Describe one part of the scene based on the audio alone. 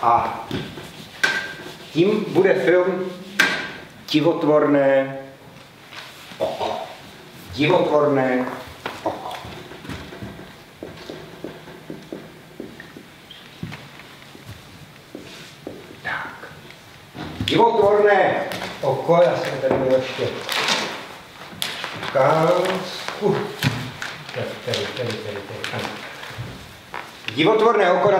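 A man speaks calmly in a large echoing hall.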